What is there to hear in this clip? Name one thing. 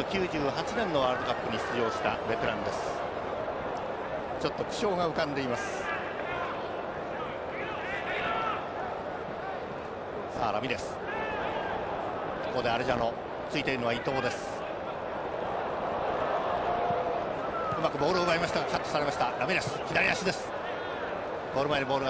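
A large stadium crowd roars and murmurs.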